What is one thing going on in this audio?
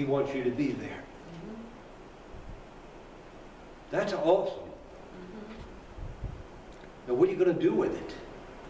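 A middle-aged man speaks calmly in bursts with pauses, in a room with a slight echo.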